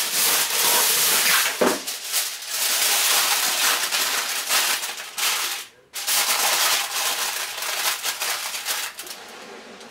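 Foil crinkles and rustles.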